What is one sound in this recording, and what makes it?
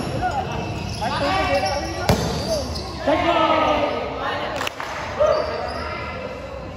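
Young men shout and call out excitedly.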